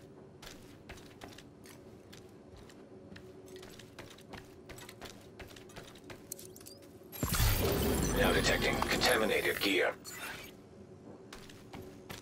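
Footsteps tread steadily across a hard floor.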